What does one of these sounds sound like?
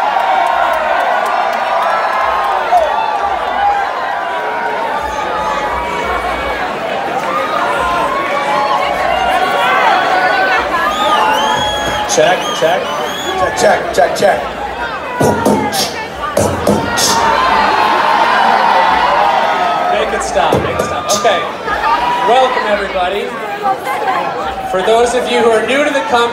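A crowd of people chatters loudly in a large echoing hall.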